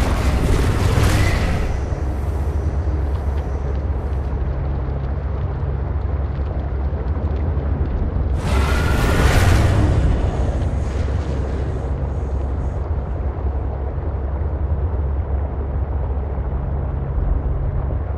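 A small submarine's engine hums low and steady underwater.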